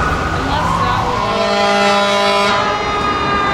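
A fire truck air horn blasts in a long, steady honk.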